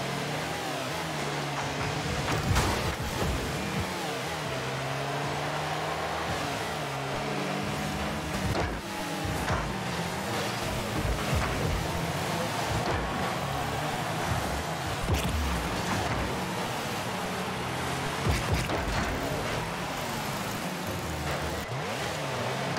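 Car engines hum and whine steadily.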